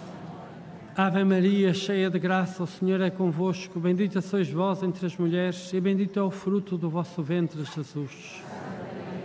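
An elderly man chants slowly through a microphone in a large echoing hall.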